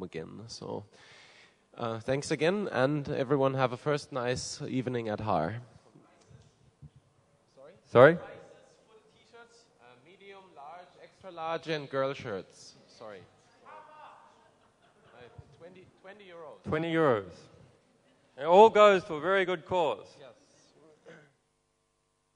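A man speaks into a microphone over loudspeakers in a large echoing hall.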